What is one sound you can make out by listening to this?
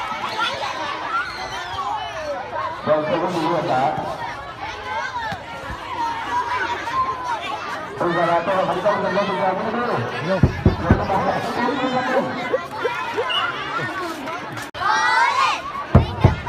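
Children shout and call out outdoors.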